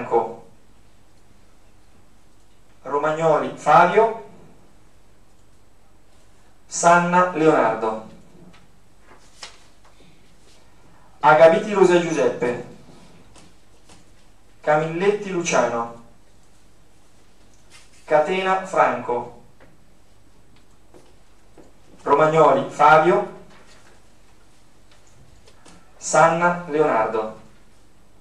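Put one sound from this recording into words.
A man speaks calmly through a microphone in short phrases with pauses, in a room with a slight echo.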